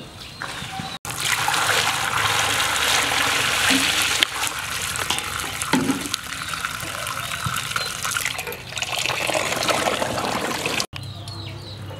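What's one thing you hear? Water pours from a pipe into a metal basin.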